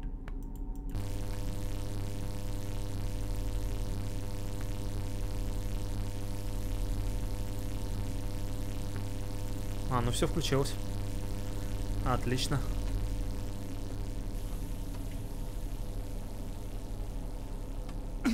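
Electricity hums steadily.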